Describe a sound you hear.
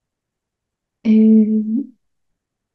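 A young woman speaks briefly over an online call.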